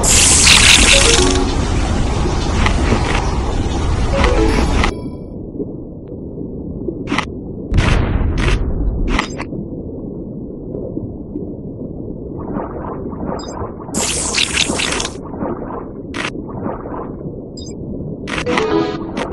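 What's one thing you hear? Cartoonish crunching bites and splashes sound from a game as a shark eats prey.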